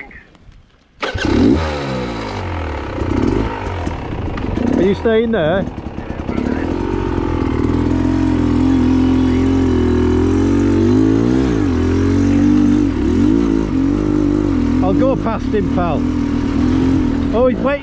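A motorcycle engine roars steadily, rising and falling in pitch as it climbs.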